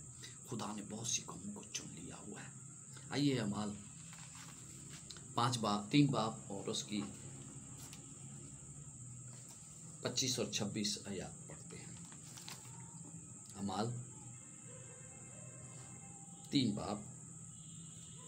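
A middle-aged man speaks calmly close to a microphone, in short bursts with pauses.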